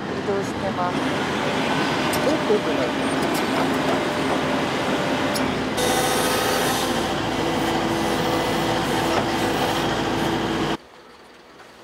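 An excavator engine rumbles steadily.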